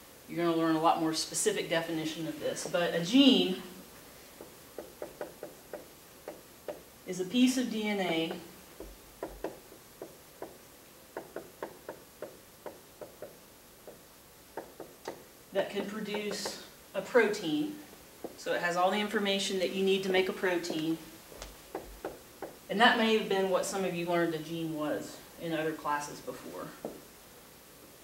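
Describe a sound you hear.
A young woman speaks calmly, with slight room echo.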